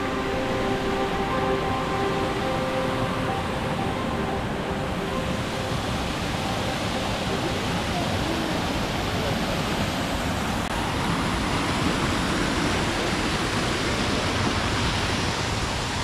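A waterfall splashes and rushes steadily nearby.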